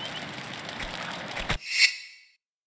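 Footsteps slap on stone.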